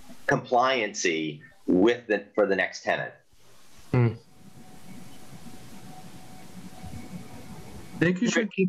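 A man talks calmly and closely into a microphone, with pauses.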